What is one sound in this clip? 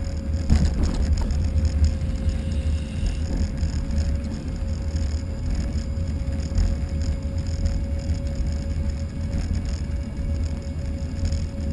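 Wind rumbles steadily in gusts, outdoors while moving.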